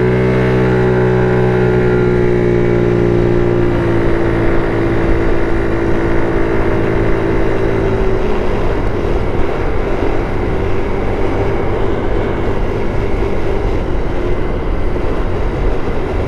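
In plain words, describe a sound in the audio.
A scooter engine hums steadily and slowly changes pitch.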